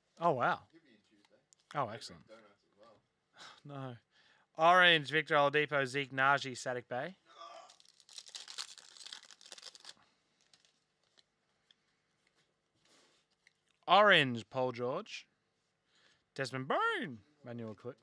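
Trading cards shuffle and flick between fingers.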